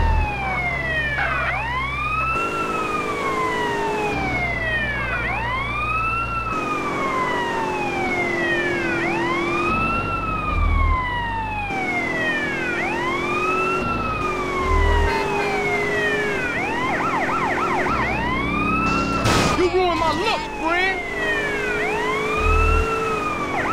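A police siren wails up and down without pause.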